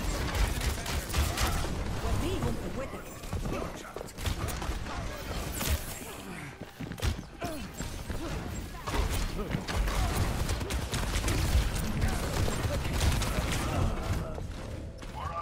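A bow fires arrows with sharp twangs and impacts.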